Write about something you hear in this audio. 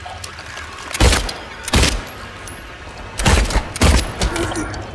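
Loud gunshots ring out one after another and echo in a tight space.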